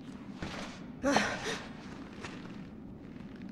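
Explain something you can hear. A young woman shouts loudly.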